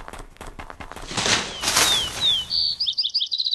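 Dry branches rustle loudly as an animal pushes through a bush.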